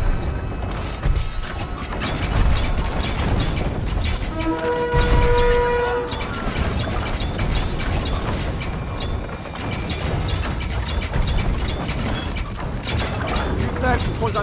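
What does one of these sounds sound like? Cannons boom in a loud battle.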